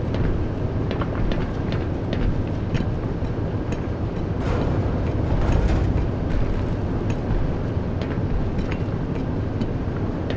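Footsteps clank on metal rungs in a slow, steady rhythm.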